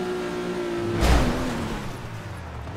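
A car crashes with a loud thud.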